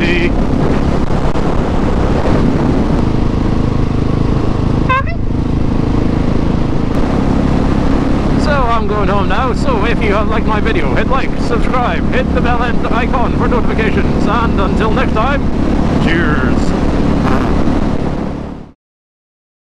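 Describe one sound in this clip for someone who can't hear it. A motorcycle engine roars and revs up and down close by.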